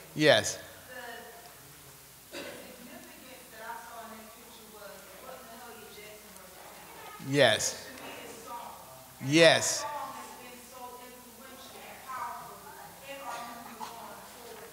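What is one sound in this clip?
A man reads aloud with expression into a microphone.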